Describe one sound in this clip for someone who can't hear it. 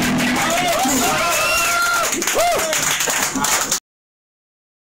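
A loud rock band plays with distorted electric guitars, bass and drums.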